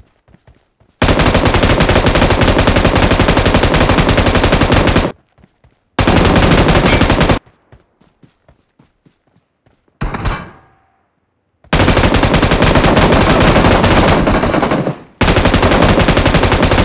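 Rapid automatic gunfire rattles in long, loud bursts.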